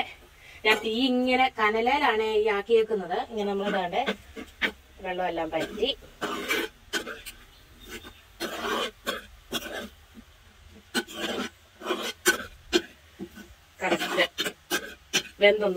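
A metal spoon scrapes against a pan while stirring.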